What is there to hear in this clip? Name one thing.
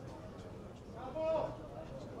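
A man shouts loudly from the sideline.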